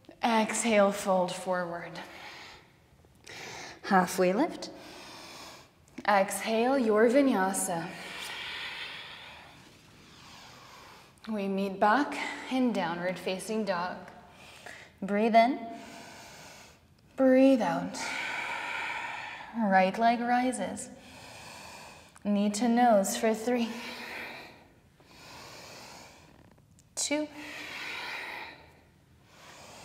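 A young woman speaks calmly and steadily.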